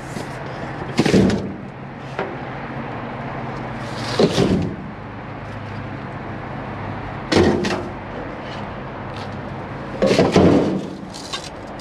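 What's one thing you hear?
Plastic parts knock and clatter against a metal bin.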